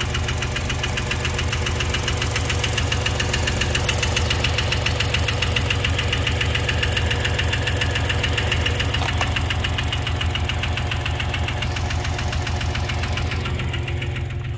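An engine idles with a steady, rapid ticking clatter.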